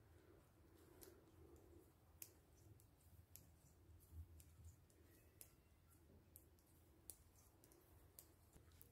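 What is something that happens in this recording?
Knitting needles click softly.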